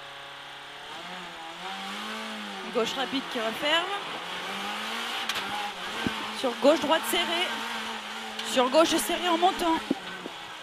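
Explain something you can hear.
A rally car engine revs and roars as the car accelerates.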